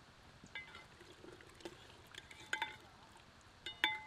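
A metal spoon stirs water in a metal pot.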